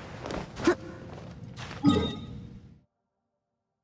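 Game music and effects play as a character climbs.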